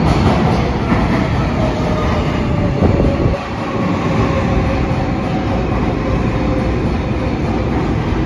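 Train brakes squeal as a subway train slows to a stop.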